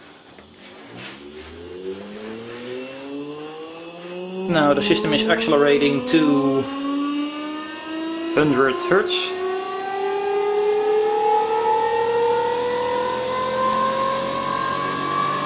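An electric motor whirs and rises steadily in pitch as it spins up.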